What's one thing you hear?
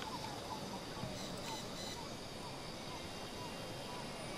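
Footsteps crunch softly on leafy ground.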